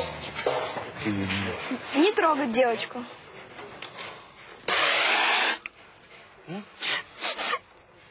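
A young man speaks, close by.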